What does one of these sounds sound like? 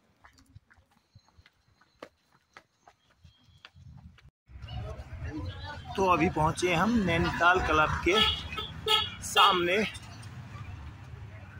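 Footsteps scuff along a paved road.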